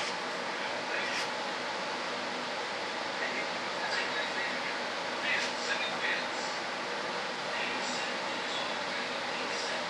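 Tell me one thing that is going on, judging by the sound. Small parts click and rattle as they are handled.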